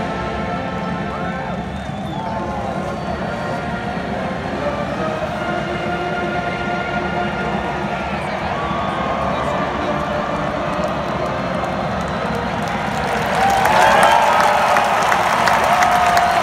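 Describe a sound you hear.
A huge stadium crowd murmurs and chatters outdoors.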